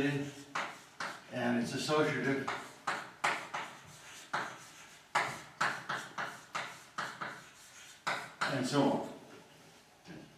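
An elderly man speaks calmly in an echoing room.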